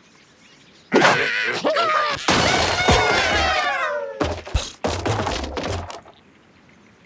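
Wooden blocks crash and clatter as they tumble down.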